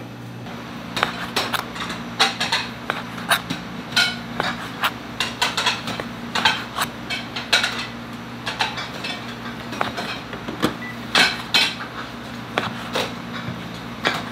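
A knife chops through meat onto a cutting board with repeated knocks.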